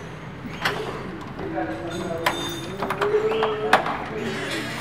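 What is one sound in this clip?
A metal padlock clicks and rattles.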